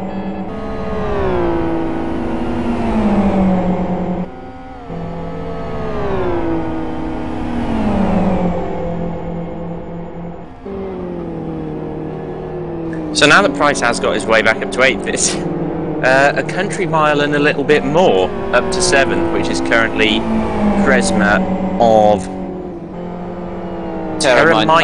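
Racing car engines whine loudly, rising and falling in pitch as they shift gears.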